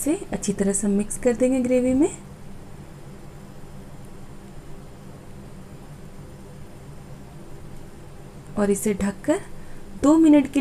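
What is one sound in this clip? A spatula scrapes and stirs inside a pan.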